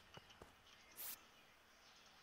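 A short electronic swish sounds.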